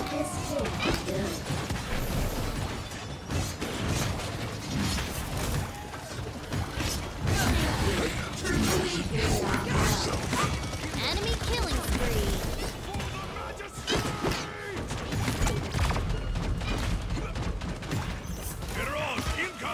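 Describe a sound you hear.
Game weapons fire and blast in quick bursts.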